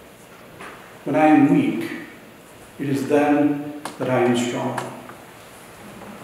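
A man speaks calmly into a microphone in an echoing hall.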